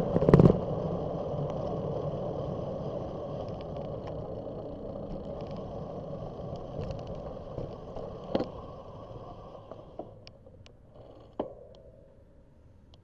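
Road noise from a moving vehicle rumbles steadily, then slowly fades as the vehicle comes to a stop.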